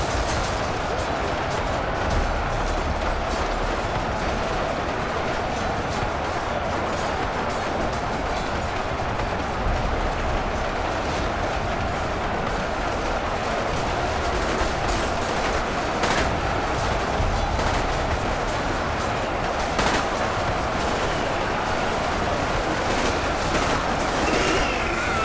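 A large battle rages with a steady, dense roar.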